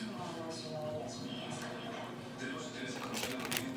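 A young woman chews food close by.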